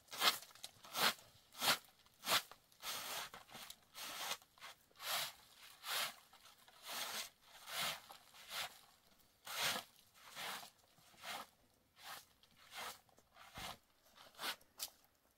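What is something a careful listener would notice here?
A broom sweeps in brisk rhythmic strokes, close by.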